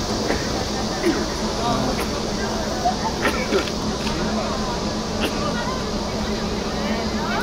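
Footsteps of shoes tap on pavement outdoors.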